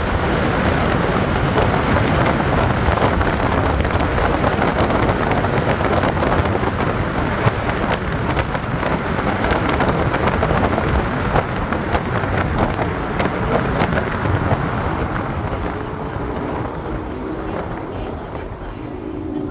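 Tyres hum on asphalt as a car drives along.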